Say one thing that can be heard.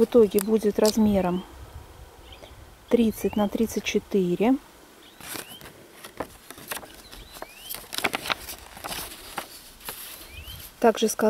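Paper and card rustle and crinkle as they are handled close by.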